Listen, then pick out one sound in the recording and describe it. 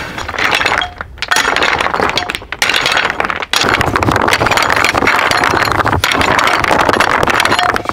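A pickaxe strikes and scrapes loose rocks.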